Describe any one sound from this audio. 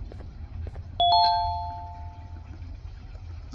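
A short two-note electronic chime sounds.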